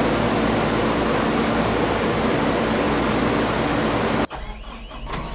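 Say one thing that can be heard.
A combine harvester engine roars loudly.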